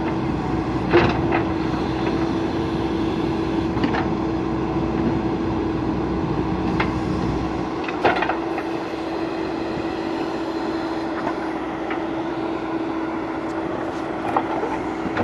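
A metal digger bucket clanks and scrapes against dirt now and then.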